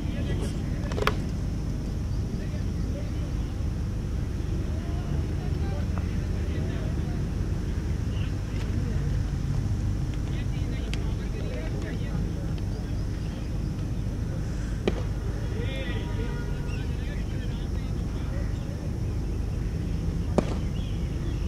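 A cricket bat cracks against a ball now and then.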